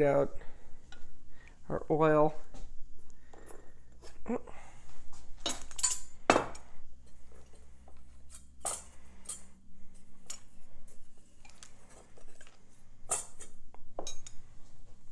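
Kitchen items knock and clink on a hard countertop.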